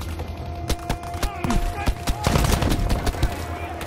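Rifle shots fire in a quick burst.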